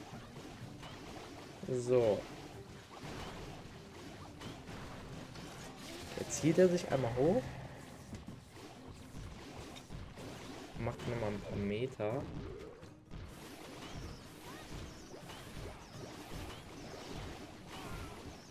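Small crashes, thuds and blasts from a video game battle play on and off.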